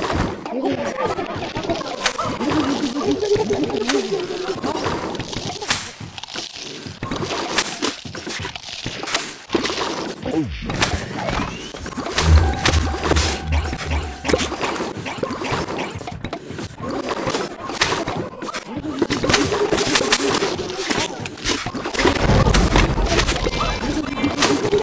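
Small cartoon shots pop and splat rapidly throughout.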